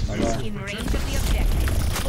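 A heavy gun fires rapidly with a deep rumble.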